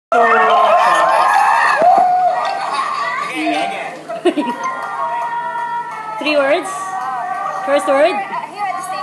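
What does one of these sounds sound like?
A group of women chatter and laugh excitedly close by.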